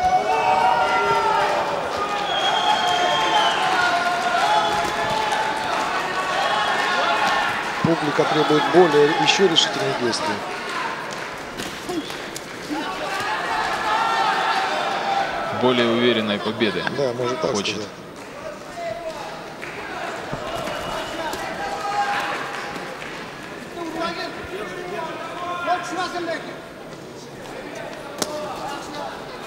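A crowd murmurs and calls out in a large hall.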